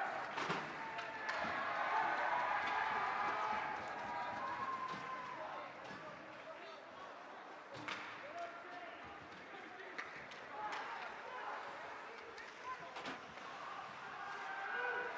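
A crowd murmurs and cheers in an echoing rink.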